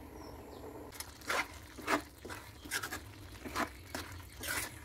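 A spoon scrapes and stirs thick food in a metal pan.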